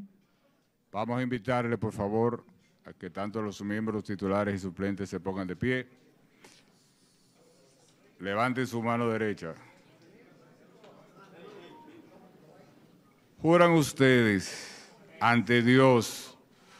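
A man speaks solemnly into a microphone, heard over a loudspeaker in a hall.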